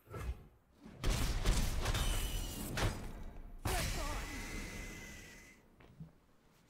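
Whooshing and crashing game effects play loudly.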